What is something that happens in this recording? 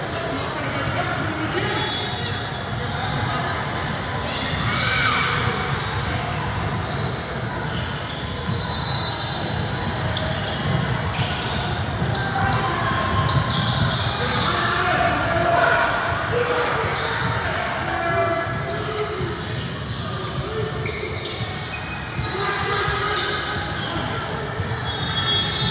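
Sneakers squeak on the court as players run.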